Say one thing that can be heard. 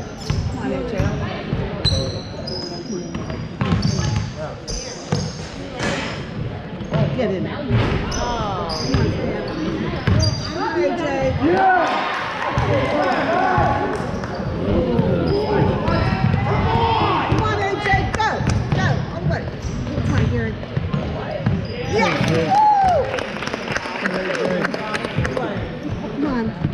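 Spectators talk and call out in an echoing gym.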